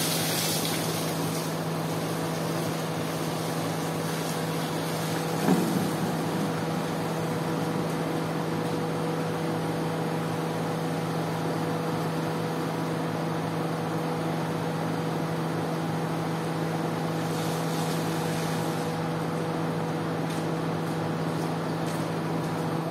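Water sprays from a hose and splashes onto a wet floor.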